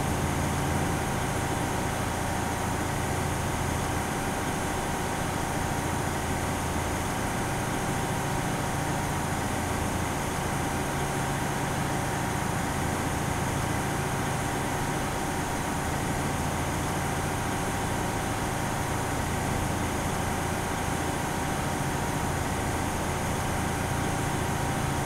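An armoured vehicle's engine rumbles steadily as it drives along a road.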